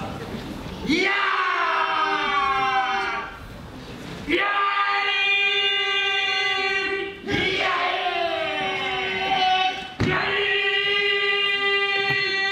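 Several people chant long, drawn-out notes together in a large echoing hall.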